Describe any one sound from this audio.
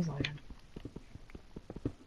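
A pickaxe chips at stone.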